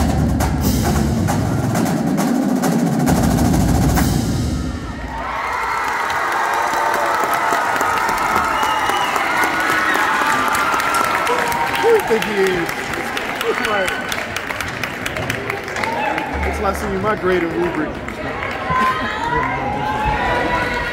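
A drumline pounds out a fast, loud rhythm on snare and bass drums.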